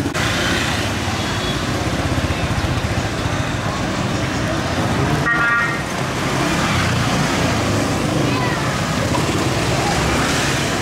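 Motorbike engines rumble and buzz close by on a busy street.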